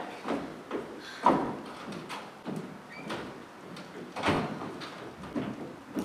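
A door opens and closes with a knock.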